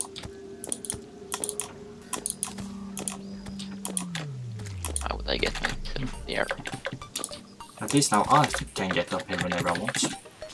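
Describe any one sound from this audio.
Short electronic game sound effects pop and clatter repeatedly.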